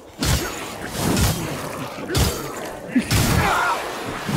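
Fire whooshes and crackles around a swinging blade.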